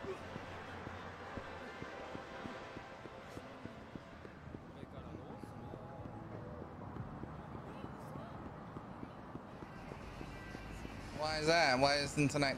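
Quick footsteps run on pavement.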